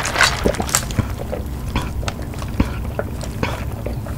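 A woman sips a drink through a straw close to a microphone.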